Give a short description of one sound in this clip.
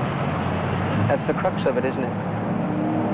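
A second man answers calmly.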